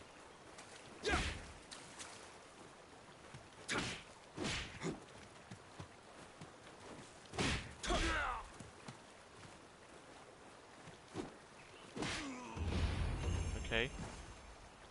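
Heavy thuds and impacts land during a fight.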